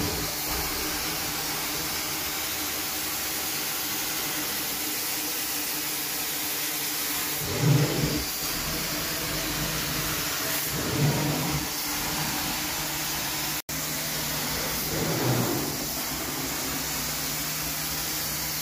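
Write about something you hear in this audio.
A carpet cleaning machine roars steadily with strong suction.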